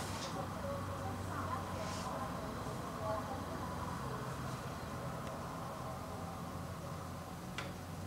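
A makeup brush brushes across a cheek.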